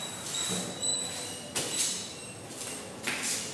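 A woman's footsteps shuffle on a hard floor close by.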